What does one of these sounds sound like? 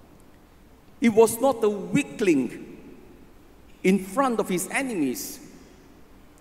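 An elderly man speaks calmly and slowly into a microphone.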